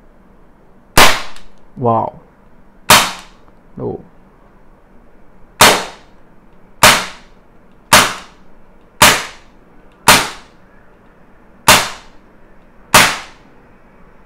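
An air pistol fires sharp shots one after another, in a room with a slight echo.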